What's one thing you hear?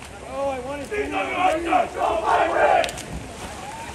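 Young men in the water shout together loudly.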